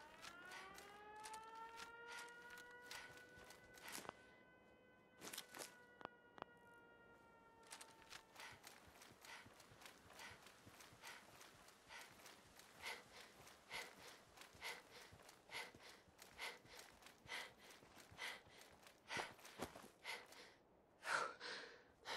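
Footsteps crunch steadily over dry leaves and dirt.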